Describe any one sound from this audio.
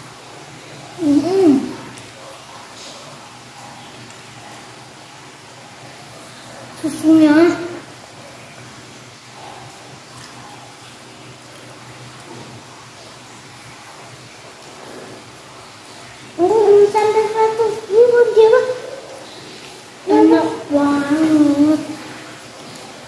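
Young boys talk with animation close by.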